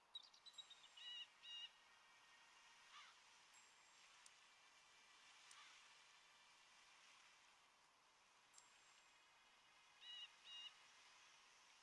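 Short electronic chimes from a computer game ring out now and then.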